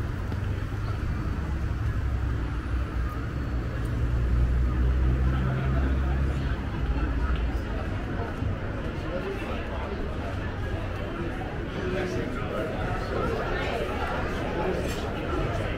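Many people chatter at once outdoors.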